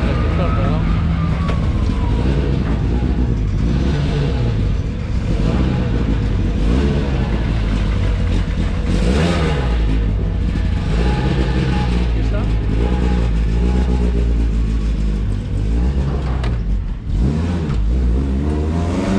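A rally car engine idles with a deep, rough rumble close by.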